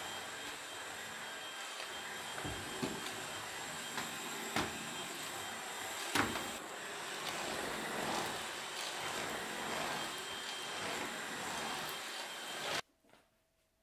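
A vacuum cleaner whirs steadily.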